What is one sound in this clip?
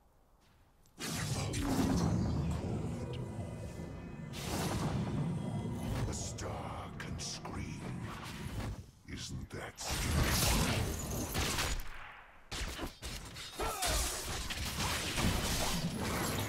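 Video game sound effects of spells and fighting play.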